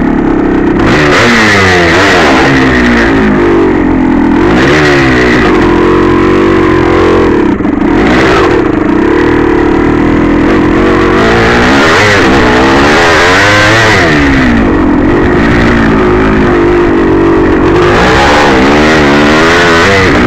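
A dirt bike engine revs loudly and close by, rising and falling in pitch.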